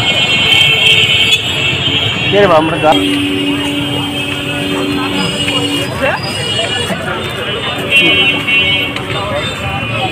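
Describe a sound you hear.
Motor traffic rumbles along a street nearby.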